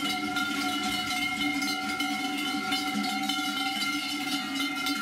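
Large cowbells clang and ring as cows walk.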